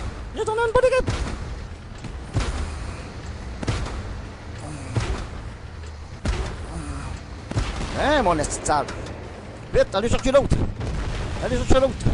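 Shells explode with heavy blasts.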